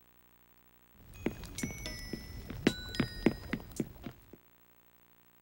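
A cauldron bubbles.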